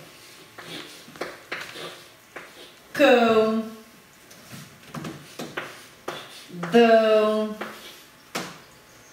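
A woman speaks clearly and slowly, as if teaching, close by.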